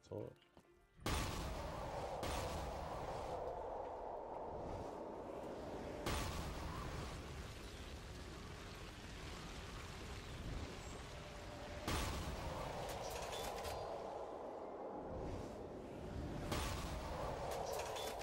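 A weapon fires with a steady roar.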